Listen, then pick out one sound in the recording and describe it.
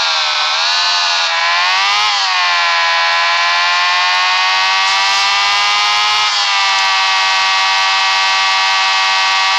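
A motorbike engine whines steadily, its pitch rising and dipping as the bike speeds up.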